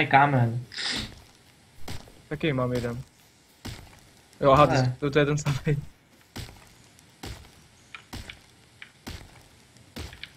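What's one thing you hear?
A stone tool strikes rock with sharp knocks.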